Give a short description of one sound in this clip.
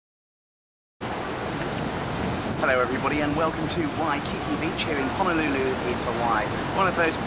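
Waves break on the shore.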